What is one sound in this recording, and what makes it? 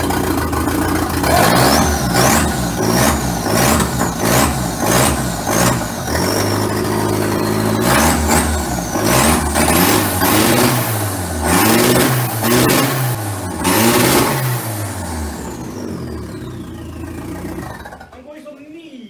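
A car engine revs hard again and again.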